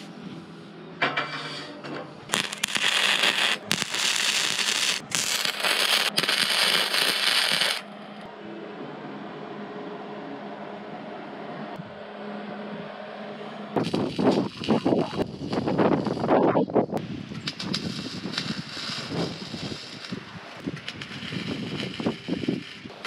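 An arc welder crackles and sizzles in bursts.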